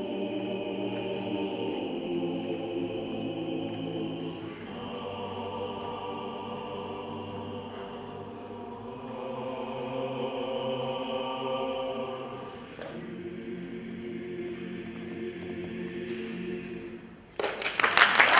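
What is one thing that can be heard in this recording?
A large mixed choir sings together in a reverberant hall.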